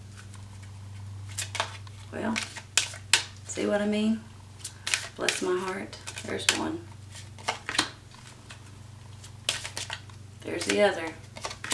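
Playing cards riffle and slap together as they are shuffled.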